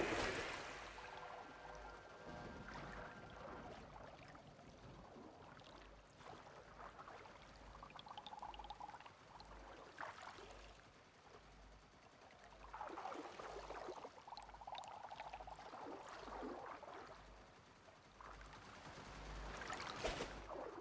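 Water laps gently around a wader.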